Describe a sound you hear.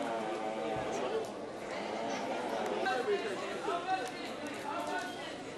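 Men and women chatter nearby.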